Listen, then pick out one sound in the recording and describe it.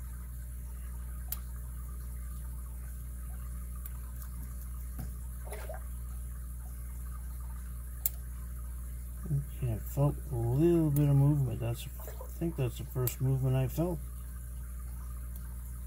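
Small metal picks scrape and click inside a padlock.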